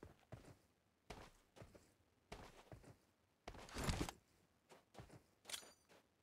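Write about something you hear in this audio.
Footsteps thud quickly on sand.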